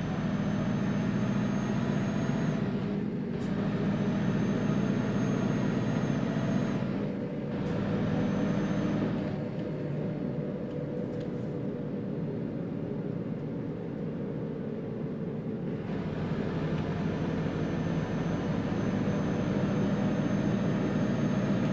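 A truck engine drones steadily at low pitch.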